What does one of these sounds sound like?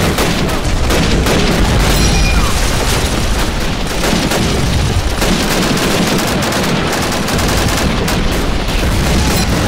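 Gunfire crackles and booms all around without pause.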